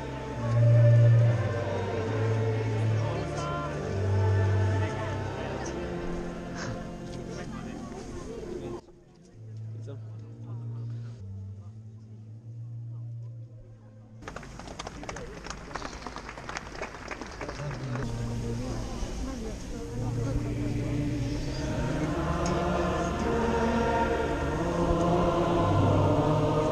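Voices chant slowly over loudspeakers, echoing across an open field.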